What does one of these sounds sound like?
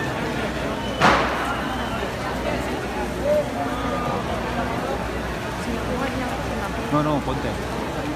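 Fireworks bang loudly.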